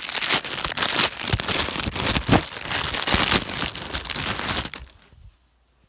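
Plastic crinkles and rustles close by.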